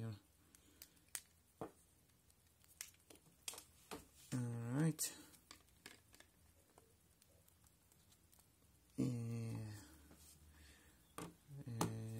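Plastic phone parts click and snap as they are handled.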